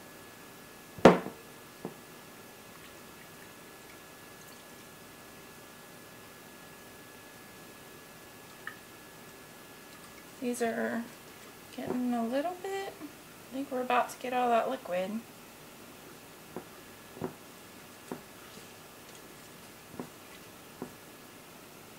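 Fingers knock and tap softly against a glass jar.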